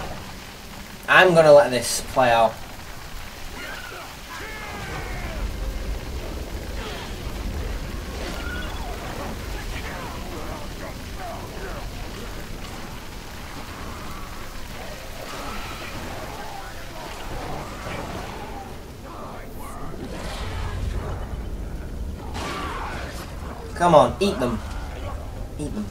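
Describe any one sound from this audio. A young man talks into a headset microphone.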